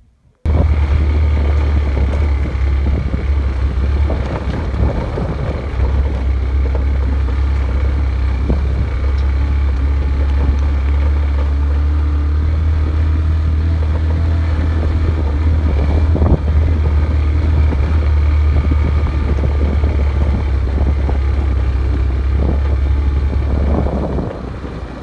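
Strong wind rumbles and buffets outdoors.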